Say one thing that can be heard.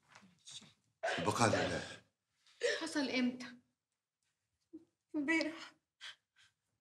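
A woman speaks with emotion close by.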